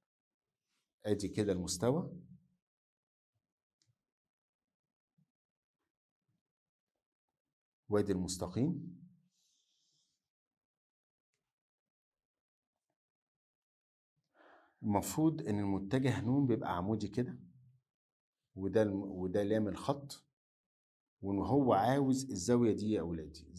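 A middle-aged man speaks calmly and clearly into a close microphone, in short bursts with pauses.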